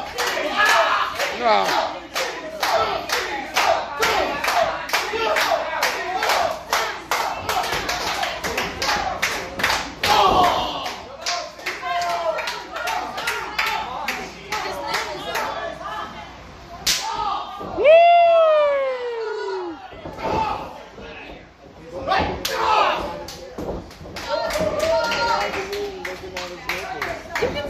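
A crowd of men and women cheers and shouts loudly.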